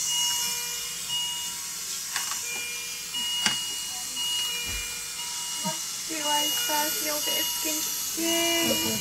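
Breathing equipment hisses steadily.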